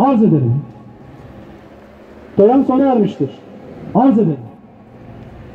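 A man speaks formally through a microphone and loudspeaker outdoors.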